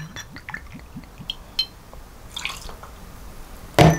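Liquid pours from a bottle into a small glass.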